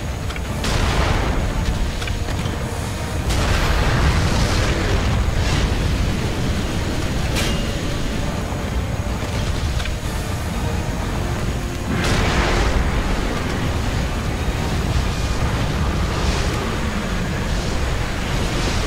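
Deep rumbling battle noise roars steadily.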